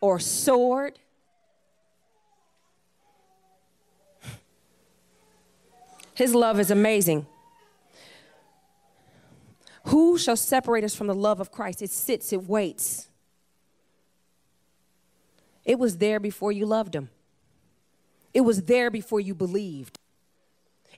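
A woman speaks with animation into a microphone, amplified in a large room, in bursts with pauses.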